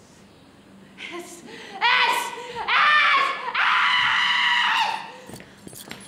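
A middle-aged woman screams and wails in anguish, close by.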